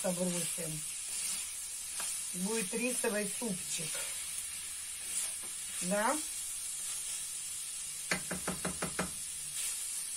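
A spatula scrapes and clinks against a frying pan.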